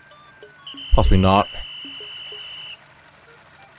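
A bright electronic tone rings out steadily, then stops.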